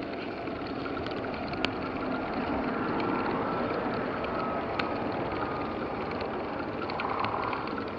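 Bicycle tyres hum on smooth asphalt.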